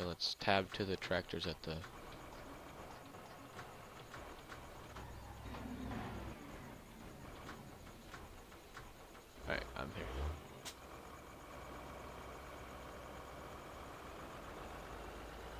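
A tractor engine idles with a low steady hum.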